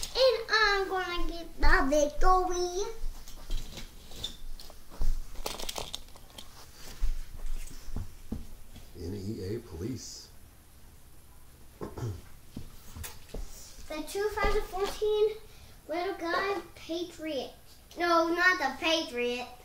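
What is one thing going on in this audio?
A young child talks excitedly nearby.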